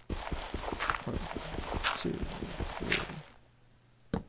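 A shovel scrapes and thuds rapidly into dirt.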